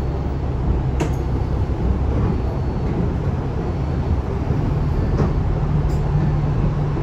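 The bus rattles and clunks as it drives.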